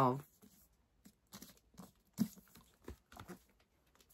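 Pages of a book rustle as they are handled.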